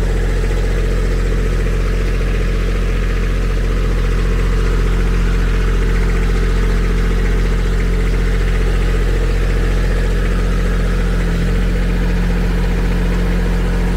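Shallow water flows and gurgles over rocks.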